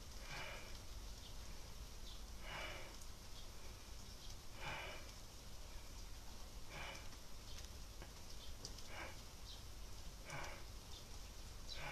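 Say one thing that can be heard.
A young woman breathes out sharply and close by, about every two seconds.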